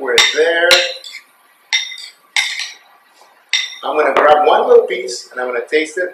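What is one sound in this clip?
A spoon scrapes against a bowl.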